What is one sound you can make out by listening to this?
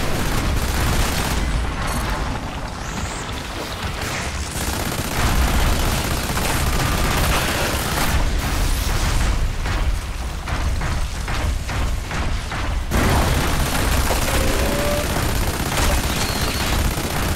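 Sparks crackle and burst from a hit.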